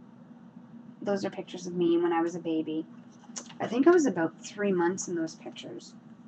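Pages of an album rustle as they are handled.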